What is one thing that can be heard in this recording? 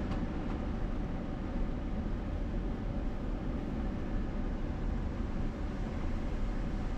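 Tyres rumble and crunch on a gravel road.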